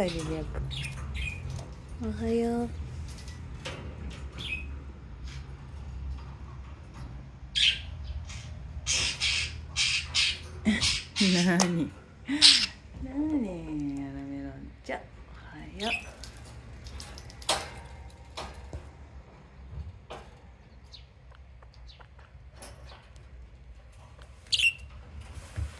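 Parakeets chirp and screech in harsh, raspy bursts.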